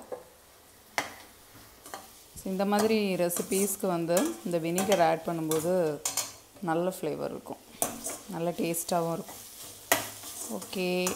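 A metal spatula scrapes and clanks against a metal pan.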